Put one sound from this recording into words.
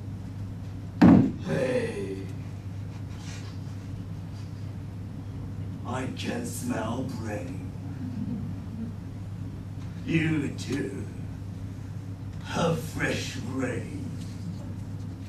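A man speaks with animation, pausing between phrases.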